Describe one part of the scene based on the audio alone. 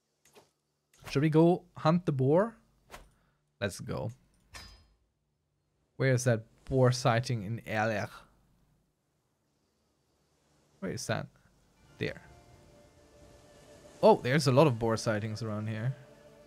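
A man talks casually into a close microphone, pausing between phrases.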